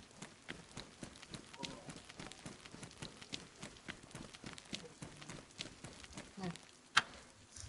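Footsteps run quickly on hard pavement.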